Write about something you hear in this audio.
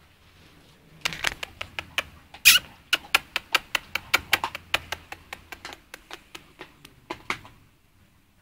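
A puppy gnaws on metal bars with quick rapping clicks.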